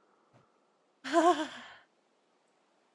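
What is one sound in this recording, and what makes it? A young woman laughs or exclaims brightly close to a microphone.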